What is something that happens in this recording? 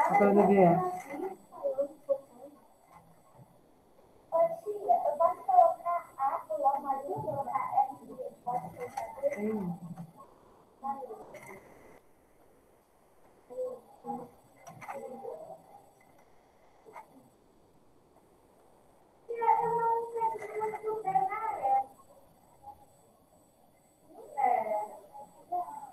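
A young woman speaks calmly through a computer microphone, in short bursts with pauses.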